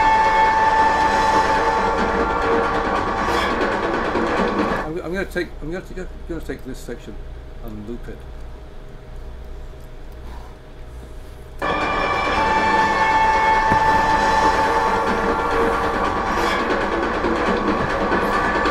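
Loud music plays, turning thin and quieter for a while before returning full.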